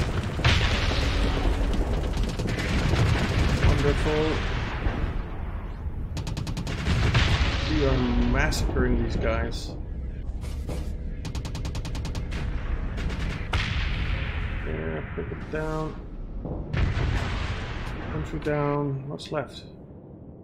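Explosions boom and rumble again and again.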